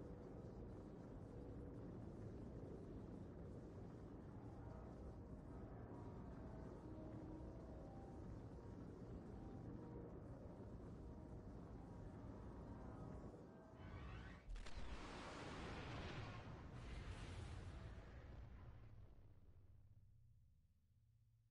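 Spacecraft engines roar in a deep, steady rumble.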